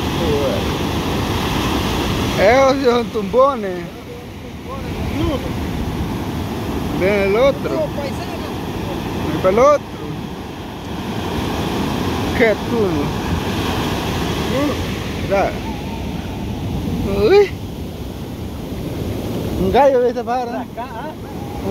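Waves crash and surge steadily onto a shore.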